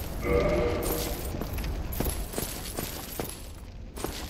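Armoured footsteps clink and thud on stone.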